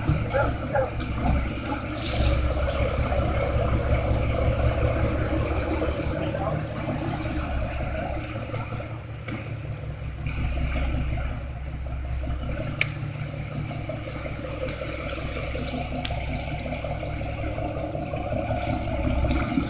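Small waves lap and splash against a boat.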